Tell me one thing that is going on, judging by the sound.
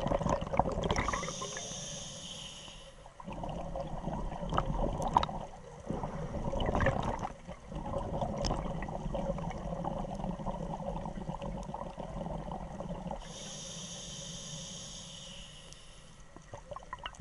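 A diver's regulator hisses with each breath in.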